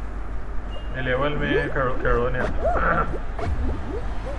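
Short electronic countdown tones beep one after another.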